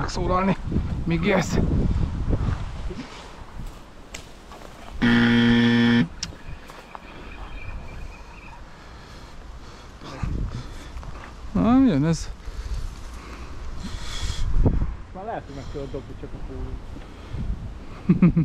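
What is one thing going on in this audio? A man talks close by, calmly.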